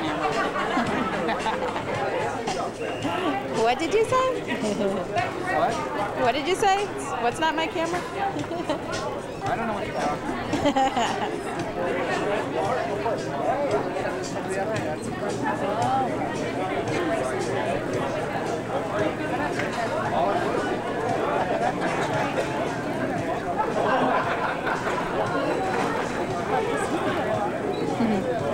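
Many people chatter in a busy open-air room.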